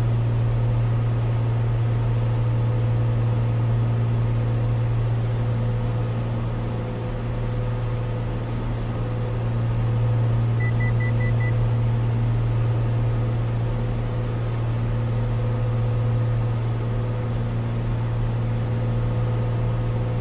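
A small propeller plane's engine drones steadily from inside the cockpit.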